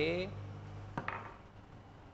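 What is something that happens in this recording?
A cup clinks down onto a saucer.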